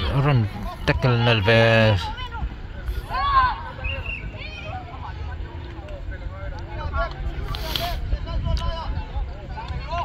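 Young boys shout loudly across an open field.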